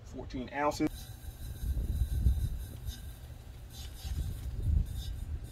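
Gas hisses briefly as a hose fitting is screwed onto a canister.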